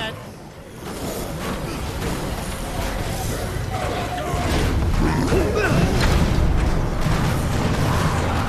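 Bodies thud against a van.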